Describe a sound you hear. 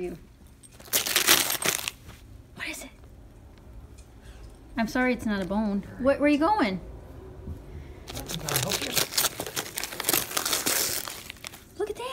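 A dog tears and rustles wrapping paper.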